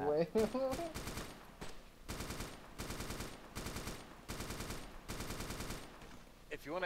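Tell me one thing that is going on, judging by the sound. A machine gun fires a rapid burst of shots.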